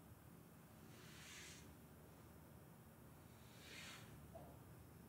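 Hands softly rub lotion into skin.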